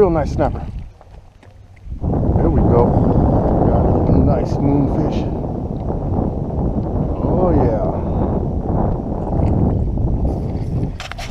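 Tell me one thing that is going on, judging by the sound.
A fishing reel clicks as its handle is wound.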